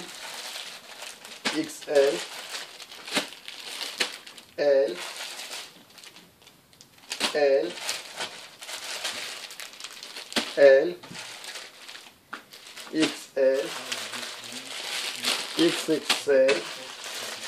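Plastic wrapping crinkles and rustles as packages are handled.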